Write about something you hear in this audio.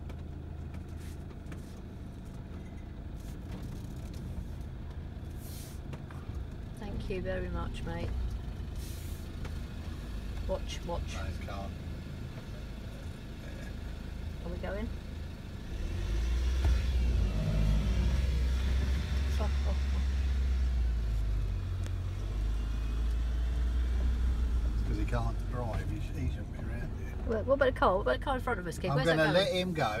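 A car engine rumbles low and steady while driving, growing louder partway through.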